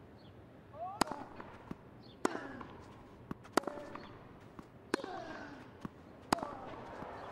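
A tennis ball is struck sharply with a racket, back and forth.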